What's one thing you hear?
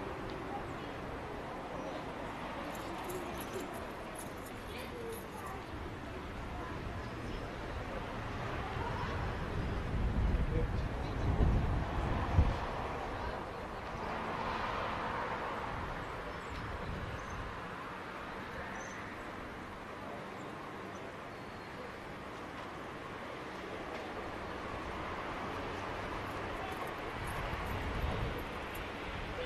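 Wind blows across an open outdoor space.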